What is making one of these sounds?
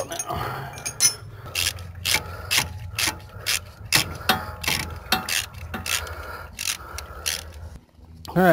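A ratchet wrench clicks in quick, repeated strokes.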